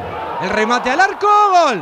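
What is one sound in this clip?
A crowd cheers in a stadium.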